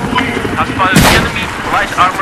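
A rocket launcher fires with a loud bang.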